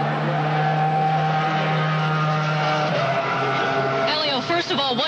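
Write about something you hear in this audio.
A racing car engine roars at high speed.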